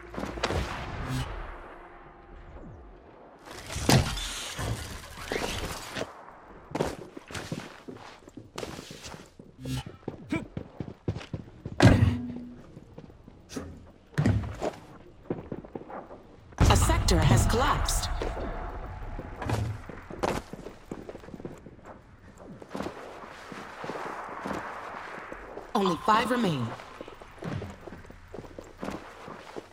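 Game sound effects whoosh and thud as a player jumps and lands.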